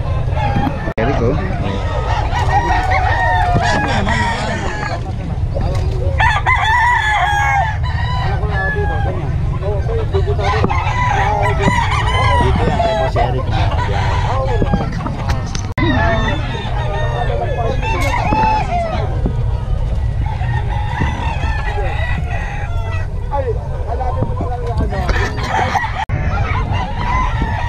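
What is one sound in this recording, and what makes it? A crowd of adult men and women talk and call out all around, outdoors.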